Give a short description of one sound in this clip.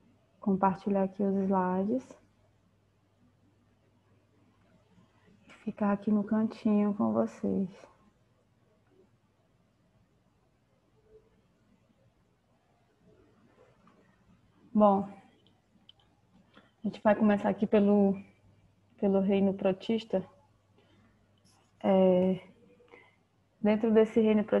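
A young woman speaks calmly over an online call, in short bursts with pauses.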